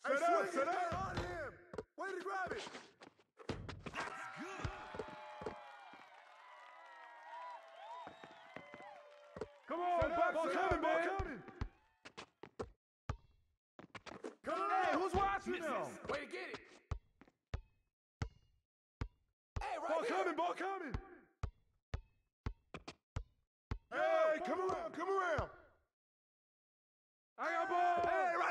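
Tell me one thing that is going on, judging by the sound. A basketball bounces on a hard court in quick, steady dribbles.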